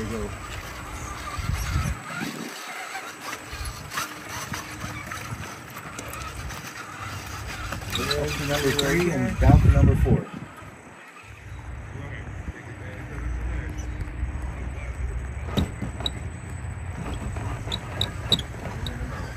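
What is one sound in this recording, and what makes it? Plastic tyres knock and clatter on wooden slats.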